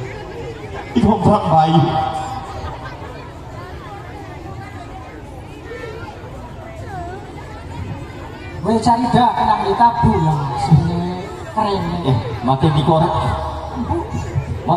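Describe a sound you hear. A woman sings through loud speakers outdoors.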